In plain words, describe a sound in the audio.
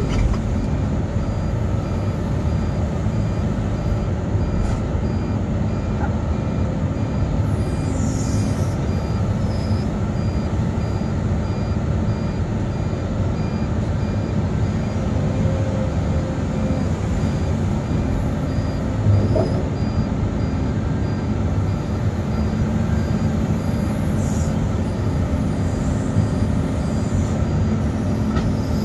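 A heavy machine's diesel engine rumbles steadily.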